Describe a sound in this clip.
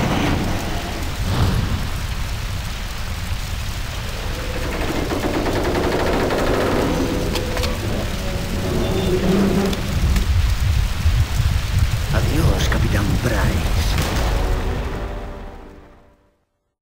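Fire roars and crackles from a burning wreck.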